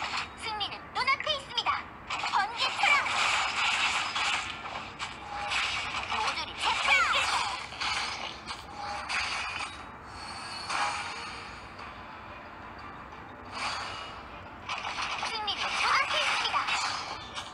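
Sword slashes and magic blasts crash in quick bursts.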